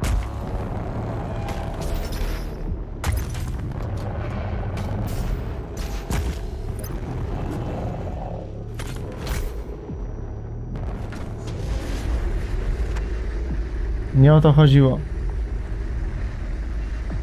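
Gunfire and explosions boom from a game.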